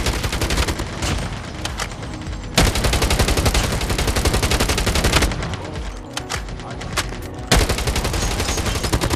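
Automatic gunfire rattles in rapid, loud bursts.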